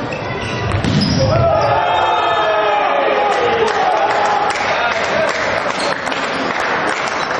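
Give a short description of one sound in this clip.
Young men shout and cheer after a point.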